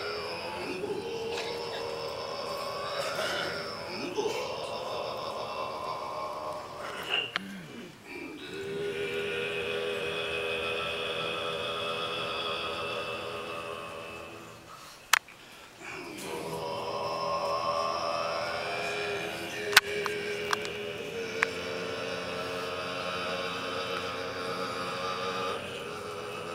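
A group of men chant together in deep, steady voices, pausing now and then.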